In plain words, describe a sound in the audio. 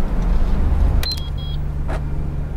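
A small car engine hums as a car pulls up close by.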